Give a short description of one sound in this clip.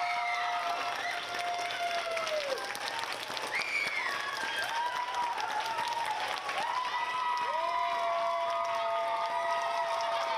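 A crowd of children claps.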